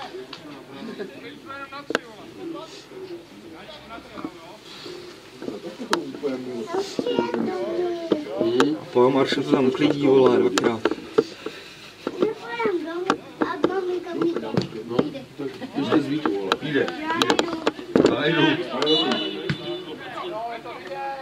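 Men talk and shout outdoors, close by.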